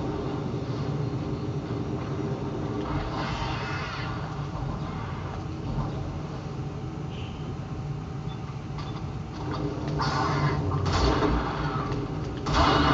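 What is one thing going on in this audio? A futuristic energy gun fires in short, crackling bursts.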